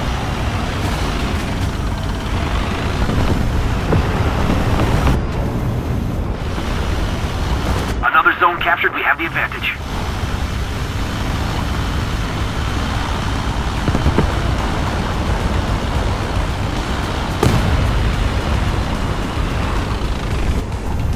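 Tank tracks clatter and squeak over the ground.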